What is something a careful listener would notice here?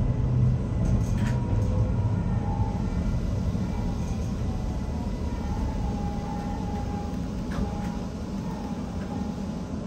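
A train rumbles and clatters along the rails, slowing down.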